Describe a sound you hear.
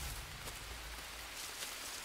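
Leaves rustle as someone pushes through plants.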